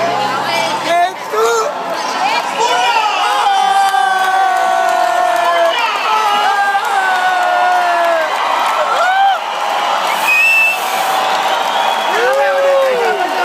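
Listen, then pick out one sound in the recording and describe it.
A crowd sings along and cheers loudly.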